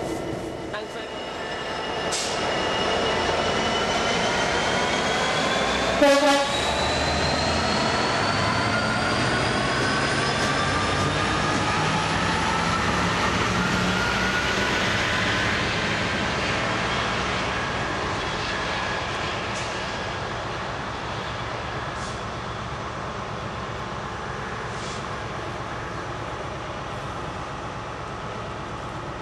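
A diesel locomotive engine roars loudly close by and slowly fades into the distance.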